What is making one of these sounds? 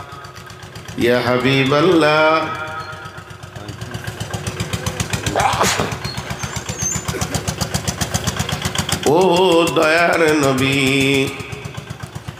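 A middle-aged man chants loudly through a microphone and loudspeakers, with echo.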